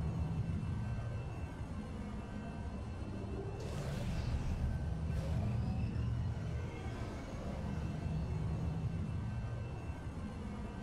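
Skateboard wheels roll with a steady low rumble.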